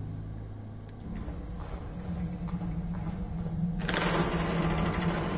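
Footsteps clank on a metal grating floor.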